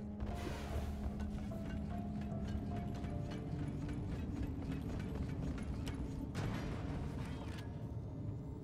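Chunks of rock clatter and crumble.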